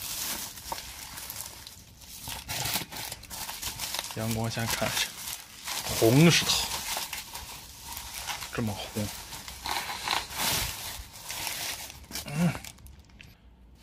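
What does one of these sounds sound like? Plastic bags crinkle and rustle as hands unwrap them.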